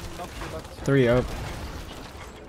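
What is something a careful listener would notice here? A ship's cannon fires with a loud boom.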